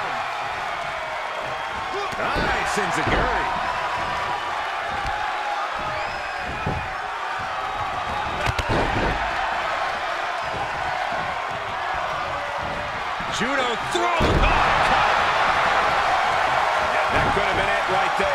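A crowd cheers and roars steadily throughout.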